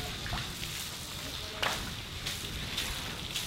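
Water gushes from a hose onto a wet floor.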